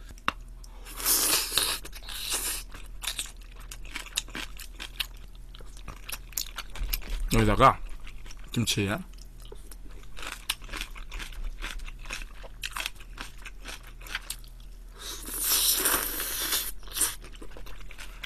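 A young man slurps noodles loudly close to a microphone.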